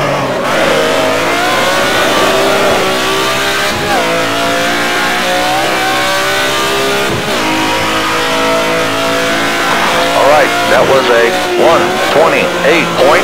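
A racing car engine roars steadily, rising in pitch and dropping with each gear shift.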